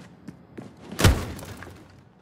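A door bangs loudly once.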